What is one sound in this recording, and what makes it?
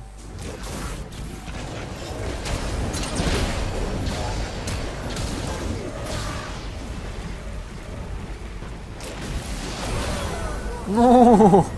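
Game combat effects clash and whoosh.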